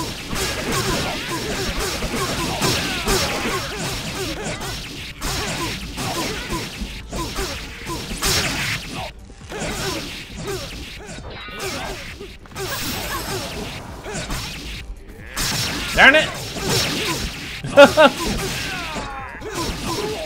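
Weapons clash and strike in a fast game battle.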